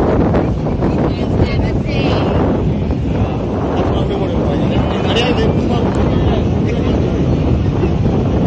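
A crowd of men chatter excitedly nearby.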